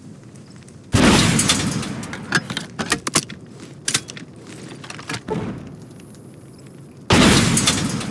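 A rocket launcher fires with a loud whoosh.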